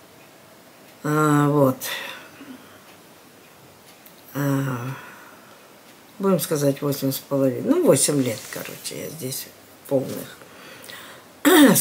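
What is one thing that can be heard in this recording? An elderly woman speaks calmly close by, in short bursts.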